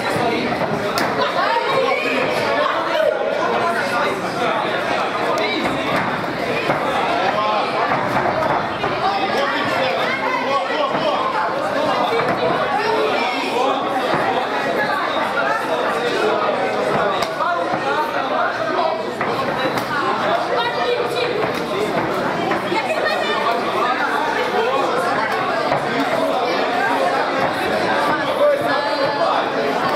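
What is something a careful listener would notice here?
Punches thud against bodies.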